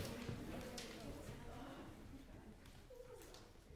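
An audience murmurs and shifts in a large hall.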